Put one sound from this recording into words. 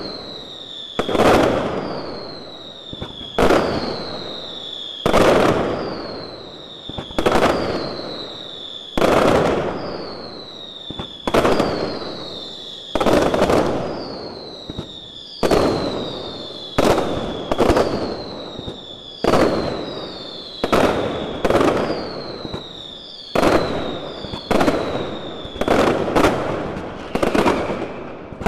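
Fireworks burst overhead with loud, echoing bangs, one after another.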